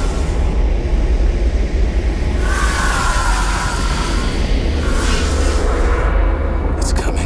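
A deep storm wind roars and rumbles.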